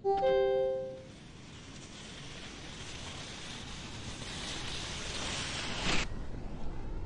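Skis slide and hiss down a snowy ramp.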